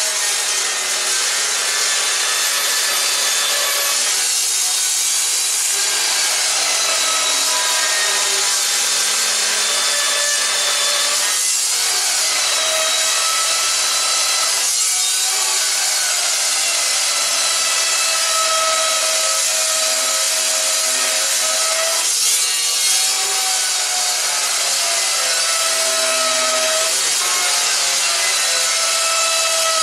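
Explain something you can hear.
An abrasive chop saw whines loudly as it cuts through metal.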